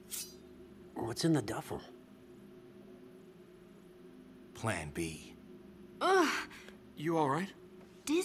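A young woman speaks tensely.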